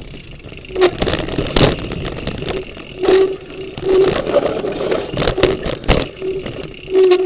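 A bicycle rattles and clatters over a rough dirt trail.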